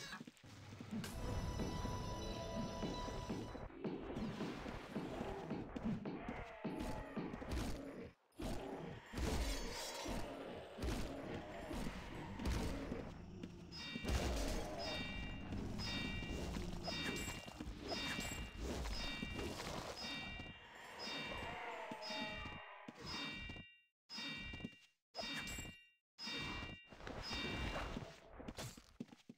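Monsters roar and blows clash in a busy fight.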